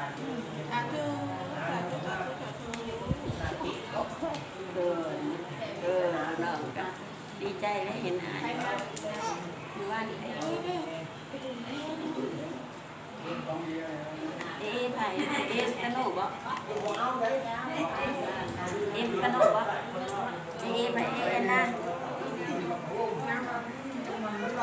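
An elderly man chants a blessing steadily, close by.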